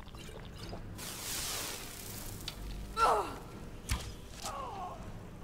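A magical blast crackles and hisses loudly.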